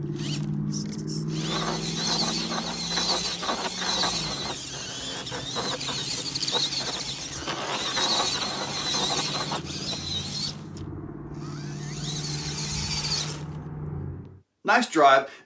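A toy car's electric motor whines as it crawls over grass outdoors.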